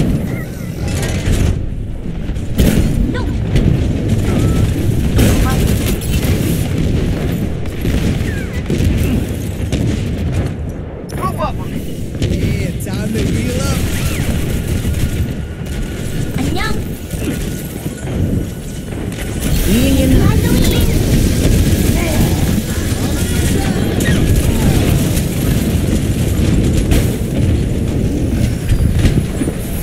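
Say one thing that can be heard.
Game sound effects play throughout.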